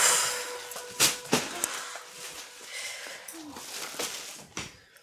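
Bags thump down onto a sofa.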